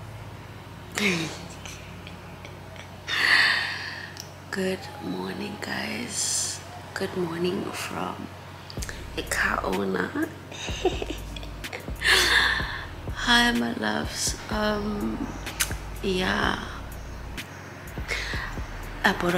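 A young woman talks cheerfully up close.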